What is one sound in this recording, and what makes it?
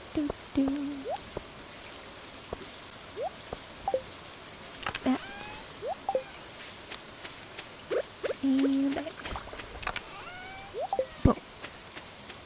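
Short electronic blips and chirps sound now and then.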